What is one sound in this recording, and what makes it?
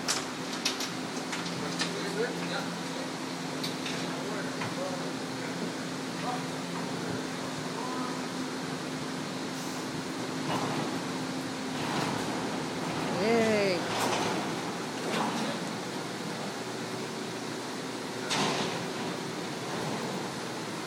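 Men talk nearby in low voices.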